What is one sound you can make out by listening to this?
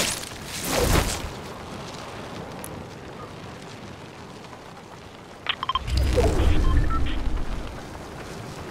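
Wind rushes loudly in loud gusts.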